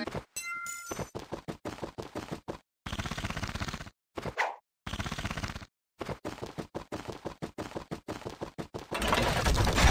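Quick light footsteps patter in a steady running rhythm.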